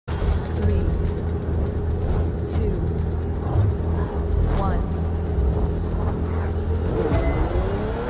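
A sports car engine rumbles low and steady.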